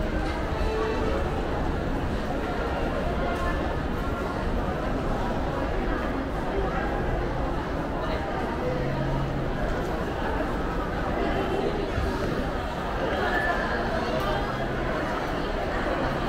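A crowd chatters all around in a large echoing hall.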